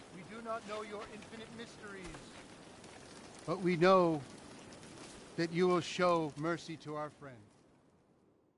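A man speaks slowly and solemnly outdoors.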